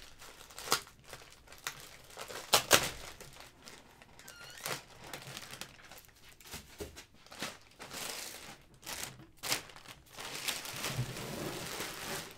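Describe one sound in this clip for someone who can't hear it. A plastic bag crinkles and rustles up close.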